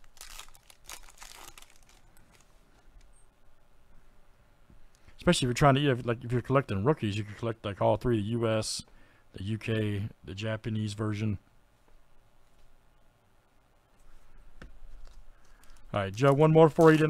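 A plastic wrapper crinkles and rustles close by.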